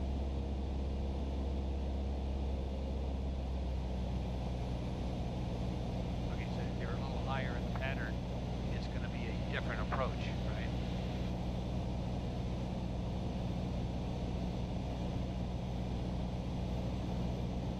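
A small plane's propeller engine drones steadily from inside the cockpit.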